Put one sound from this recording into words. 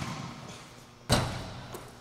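A basketball clangs off a hoop's rim.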